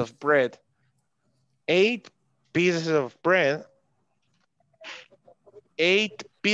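A young man speaks with animation through a computer microphone, as in an online call.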